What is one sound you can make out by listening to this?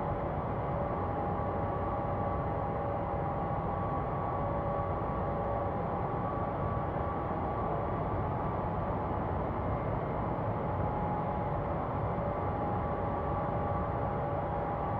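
Jet engines hum steadily with a low, even roar.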